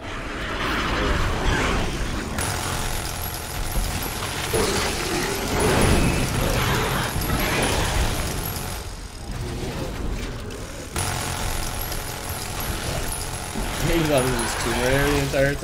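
A heavy machine gun fires in rapid, roaring bursts.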